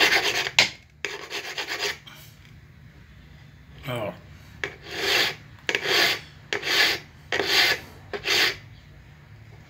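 A metal file rasps in short strokes across a blade.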